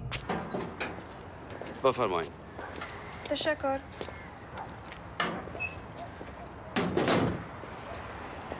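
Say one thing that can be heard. A man speaks briefly outdoors, close by.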